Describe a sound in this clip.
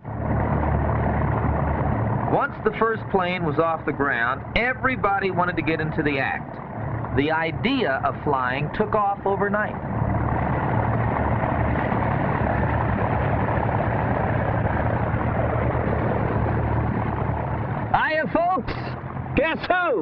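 A propeller engine drones steadily up close.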